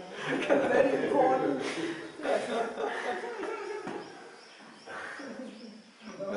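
A middle-aged man speaks cheerfully nearby, with laughter in his voice.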